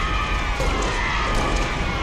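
Energy weapons fire in quick bursts of zapping shots.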